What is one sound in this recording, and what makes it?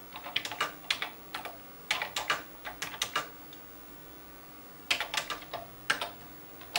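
Keys clatter in quick bursts as someone types on a computer keyboard.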